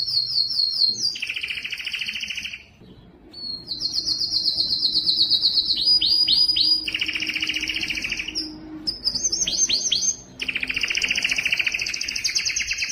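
A canary sings a long, loud song of rapid trills and chirps close by.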